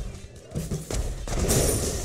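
Gunfire crackles in quick rapid shots.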